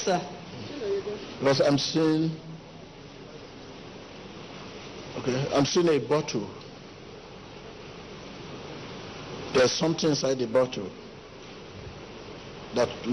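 A man speaks into a microphone in short bursts, with long pauses, in a large echoing hall.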